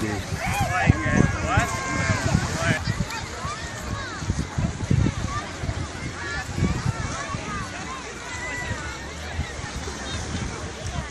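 Many people chatter and shout nearby, with children's high voices calling out.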